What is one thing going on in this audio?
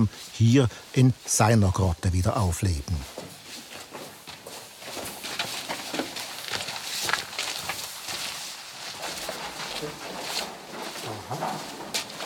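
Footsteps shuffle on a gritty floor in an echoing passage.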